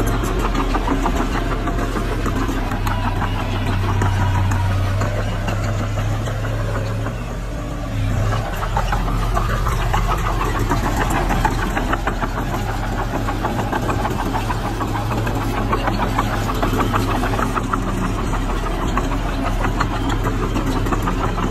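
A bulldozer's diesel engine rumbles steadily nearby.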